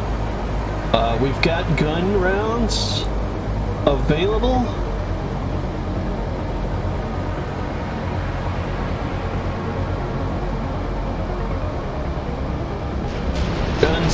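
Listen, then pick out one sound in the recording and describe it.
A vehicle engine rumbles steadily at a low pitch.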